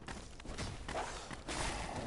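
A sword swings and strikes with a metallic clash.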